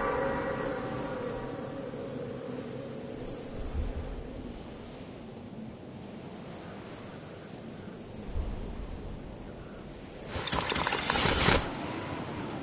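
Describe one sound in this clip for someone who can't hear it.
Wind rushes past a video game character in freefall.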